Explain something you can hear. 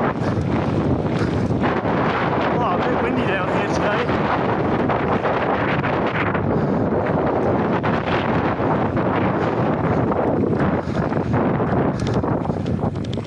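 Wind roars loudly over a close microphone.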